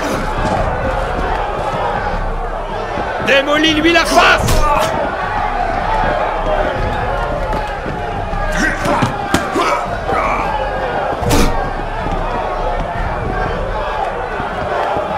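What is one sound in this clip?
A crowd of men murmurs and cheers throughout.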